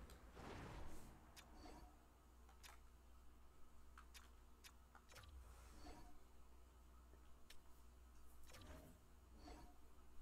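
Short electronic menu clicks and whooshes sound now and then.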